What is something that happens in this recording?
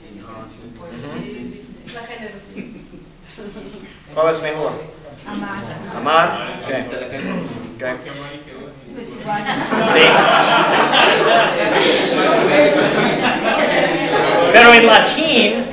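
A man speaks calmly to a room.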